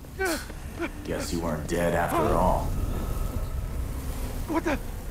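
A young man speaks with strain, close by.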